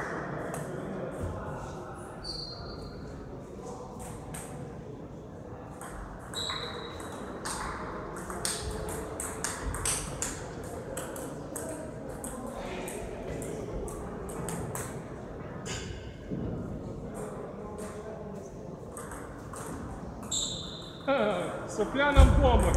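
Men talk nearby in an echoing hall.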